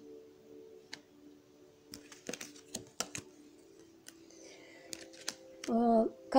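Playing cards flick and slap softly against each other.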